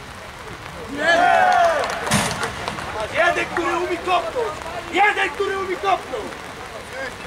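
Men shout excitedly nearby, outdoors.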